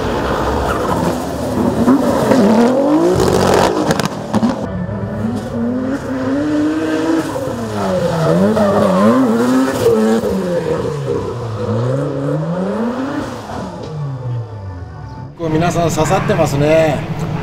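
A race car engine roars and revs up and down hard.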